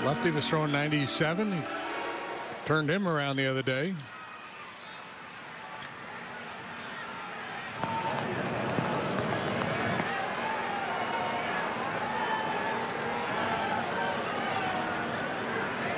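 A stadium crowd murmurs in the background.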